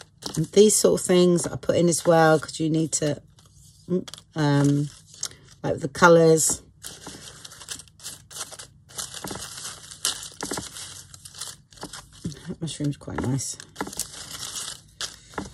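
Paper scraps rustle and crinkle as a hand sorts through them.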